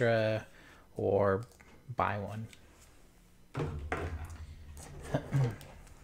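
Cables and plastic connectors rattle against a wooden table.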